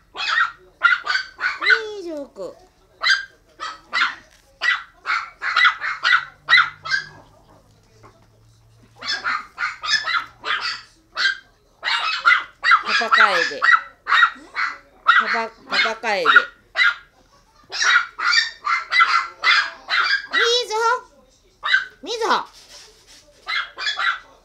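Chihuahua puppies bark in sharp, high-pitched yaps.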